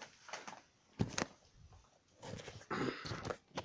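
Fabric rustles and knocks against the microphone.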